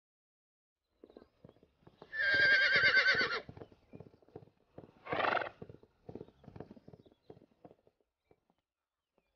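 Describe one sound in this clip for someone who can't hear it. A horse's hooves thud on soft ground at a trot.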